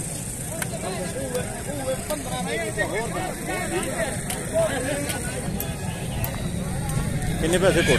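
Several men talk at once in a busy outdoor crowd.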